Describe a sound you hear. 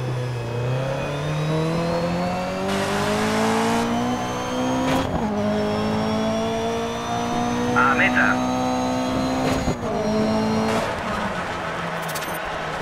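A racing car engine revs high, rising and dropping with each gear change.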